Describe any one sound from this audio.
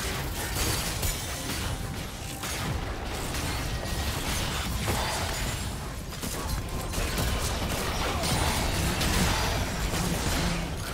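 Game characters' attacks clash and thud rapidly.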